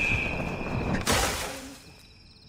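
A body lands in a pile of hay with a rustling thud.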